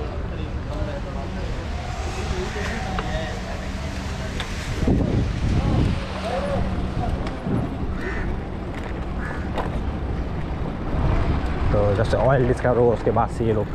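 Scooter wheels rattle over paving stones.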